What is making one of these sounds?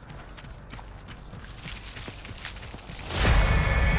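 Tall grass and leaves rustle as someone pushes through them.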